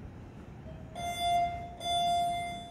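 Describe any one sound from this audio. An elevator chime rings twice.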